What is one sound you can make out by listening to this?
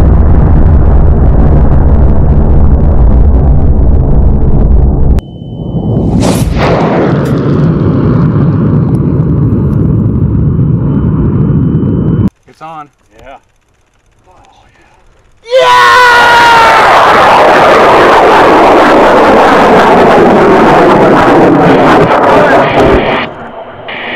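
A high-power rocket motor roars at liftoff.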